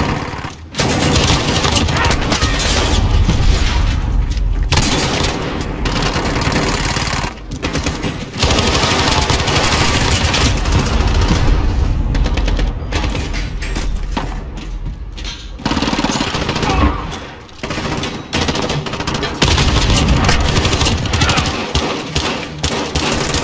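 Automatic rifle fire crackles in bursts.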